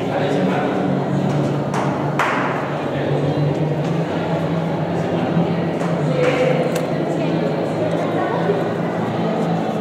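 A young girl talks softly close by.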